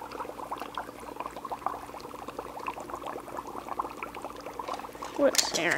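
Dry ice bubbles and fizzes in water.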